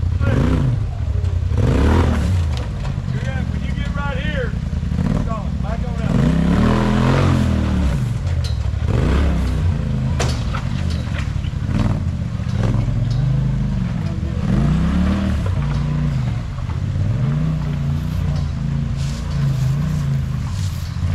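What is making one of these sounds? An engine revs hard, rising and falling over and over.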